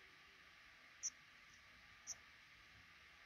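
Baby birds give a few short, high chirps.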